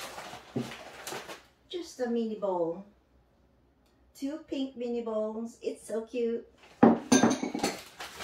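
Ceramic dishes clink together.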